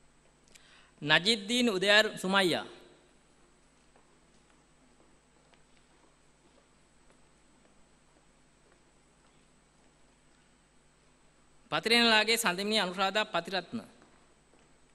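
A man reads out briefly through a loudspeaker in a large echoing hall.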